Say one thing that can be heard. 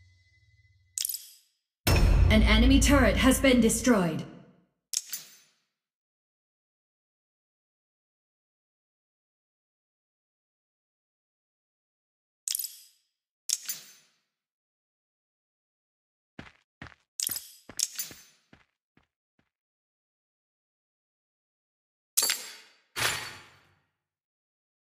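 Short electronic game sound effects chime now and then.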